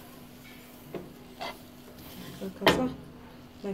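A spatula knocks against a bowl.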